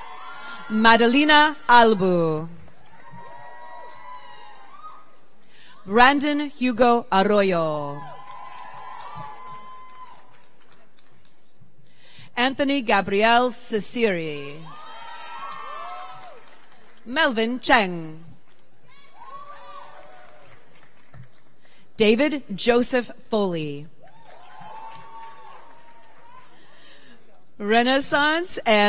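A woman reads out names through a loudspeaker in a large echoing hall.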